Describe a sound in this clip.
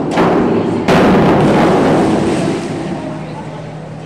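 A diver splashes into the water.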